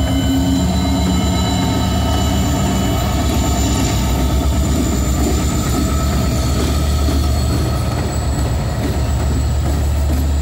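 Diesel locomotive engines rumble loudly close by.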